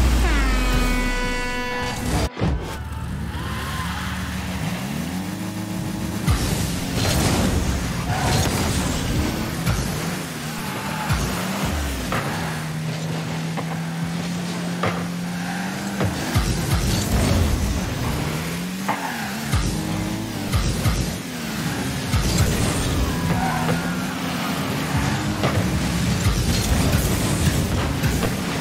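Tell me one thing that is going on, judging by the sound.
A rocket boost roars in short bursts.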